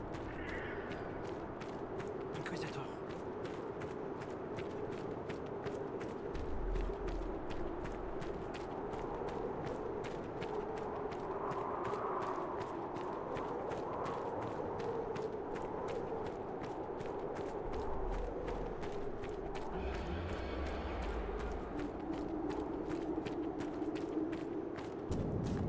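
Footsteps run quickly and crunch on snow.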